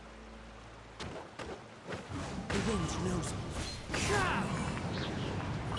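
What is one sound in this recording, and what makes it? Game sword swings and magic blasts whoosh and crash loudly.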